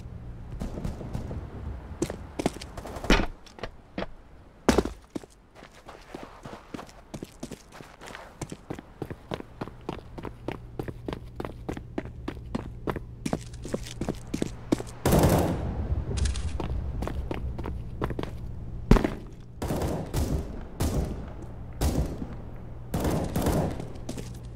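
Quick footsteps tap steadily on hard ground.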